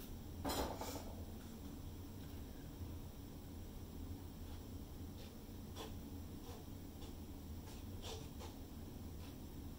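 A plastic cup knocks softly against a board.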